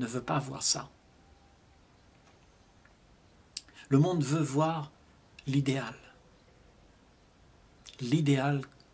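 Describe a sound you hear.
An elderly man speaks calmly and slowly, close by, with pauses between phrases.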